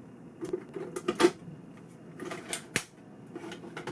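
A cassette door snaps open with a mechanical clatter.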